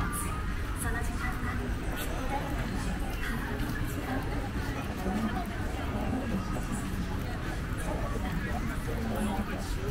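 A crowd murmurs in a busy street outdoors.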